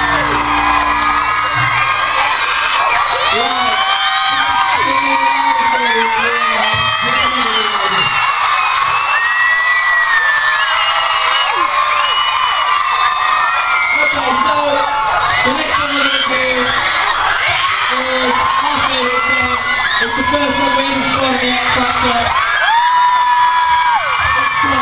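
A large crowd of young women screams shrilly and without pause.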